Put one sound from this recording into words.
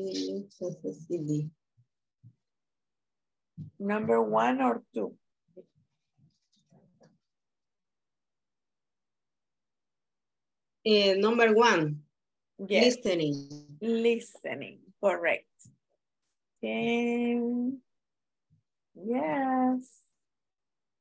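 A young woman speaks calmly, heard through an online call.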